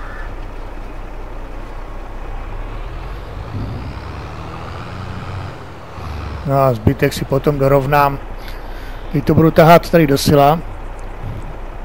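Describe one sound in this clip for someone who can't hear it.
A tractor engine hums steadily as the tractor drives along.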